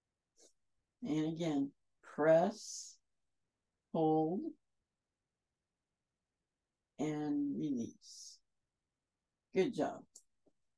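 A woman speaks calmly and slowly in short phrases, heard through a microphone.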